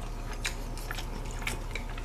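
A young man gulps down a drink.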